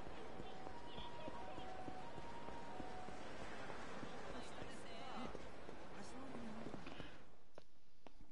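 A crowd murmurs along a busy street.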